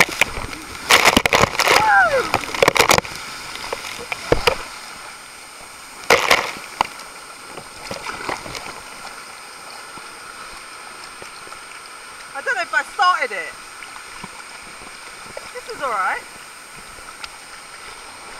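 Water rushes and splashes around a raft sliding down a tube.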